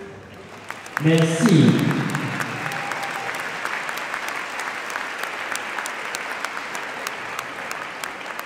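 A large audience applauds in an echoing hall.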